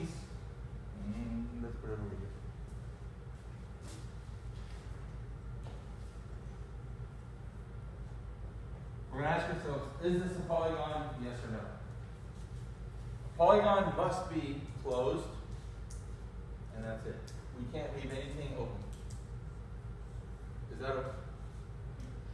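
A man speaks nearby, calmly explaining in short bursts.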